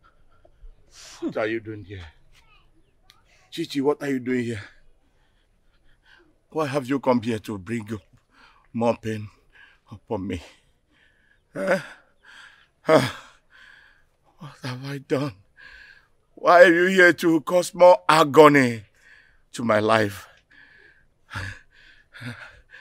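A middle-aged man groans and speaks in pain, close by.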